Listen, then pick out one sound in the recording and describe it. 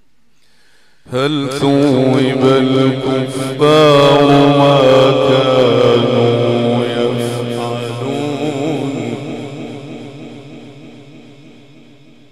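An elderly man chants loudly and melodiously through a microphone.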